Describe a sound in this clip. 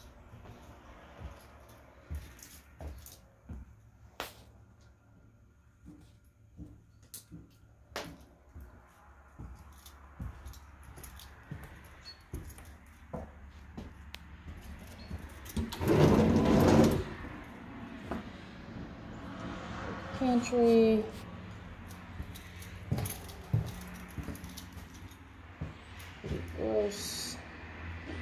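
Footsteps creak and thud on a wooden floor.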